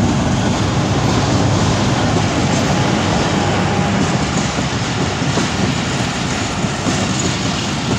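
A passenger train rumbles past close by, its wheels clattering on the rails.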